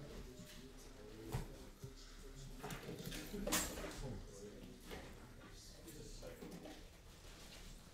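Plastic wrapping crinkles as a card pack is torn open.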